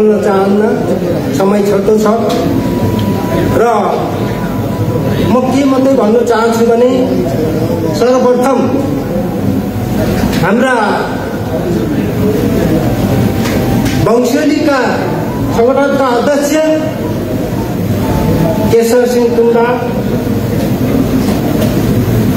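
A man speaks steadily into a microphone, heard through loudspeakers in an echoing hall.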